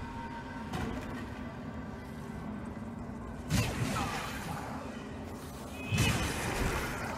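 Metal weapons clash and strike in a fight.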